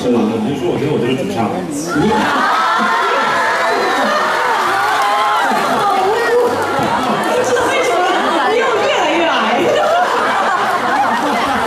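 A young man speaks into a microphone over a loudspeaker in a large hall.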